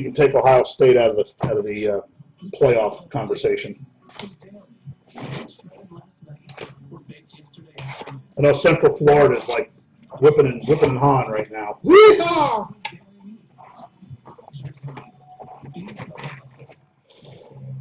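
A cardboard box rustles and scrapes as hands handle and open it.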